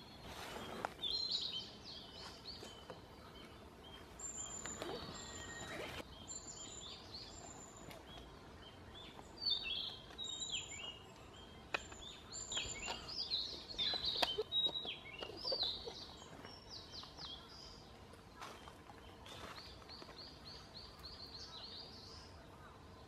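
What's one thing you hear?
A small bird sings clear, warbling phrases close by, again and again.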